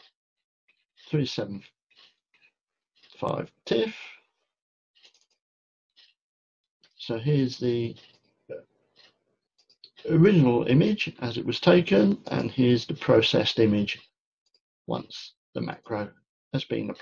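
An older man talks calmly and close to a microphone, in short phrases with pauses.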